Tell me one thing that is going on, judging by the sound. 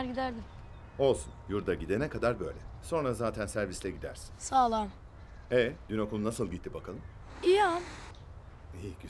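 A boy speaks softly, close by.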